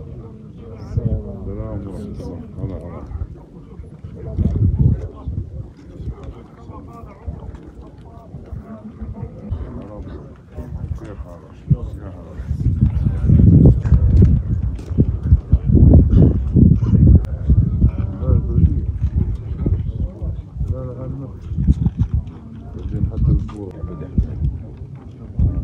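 A crowd of men murmur and talk nearby outdoors.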